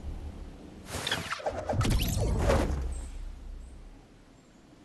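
A glider snaps open with a loud, sudden whoosh.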